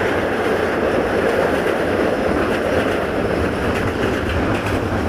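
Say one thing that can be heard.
A train rumbles steadily along the tracks, heard loudly from an open window.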